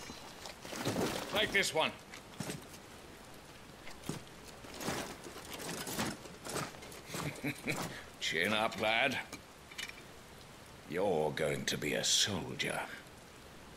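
A man speaks firmly and calmly, close by.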